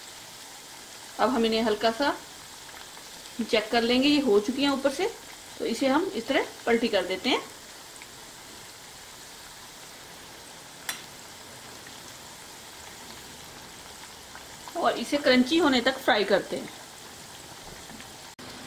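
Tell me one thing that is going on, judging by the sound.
Hot oil sizzles and bubbles steadily.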